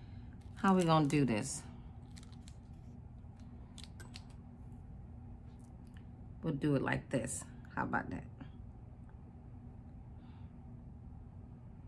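Plastic measuring spoons clatter lightly.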